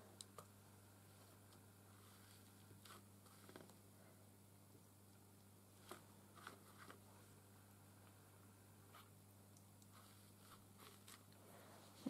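Paper rustles and crinkles softly as fingers press it down.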